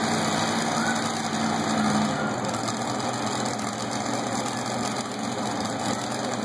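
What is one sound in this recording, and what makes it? A pulling tractor's engine roars under load in a large echoing arena.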